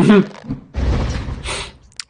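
A magic blast bursts with a loud whoosh.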